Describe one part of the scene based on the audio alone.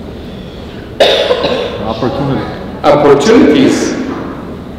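A man speaks warmly into a microphone in a large echoing hall.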